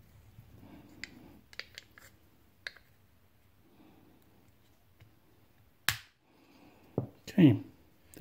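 Small plastic parts click faintly as they are handled.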